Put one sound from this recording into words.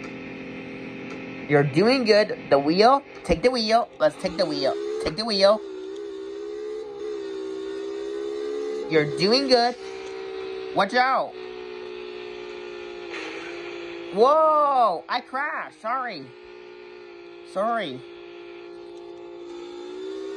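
A video game car engine drones steadily through a tablet speaker.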